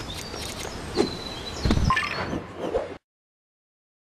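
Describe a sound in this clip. A sparkling, shimmering effect sounds with a whoosh.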